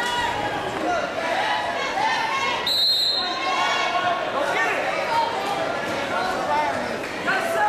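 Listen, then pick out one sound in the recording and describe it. Wrestlers' shoes squeak on a mat.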